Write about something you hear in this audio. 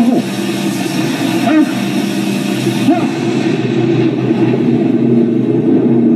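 A man speaks tensely, heard through a television speaker.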